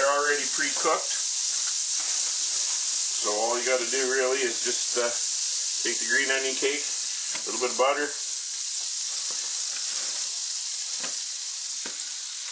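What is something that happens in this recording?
Oil sizzles steadily in a hot frying pan.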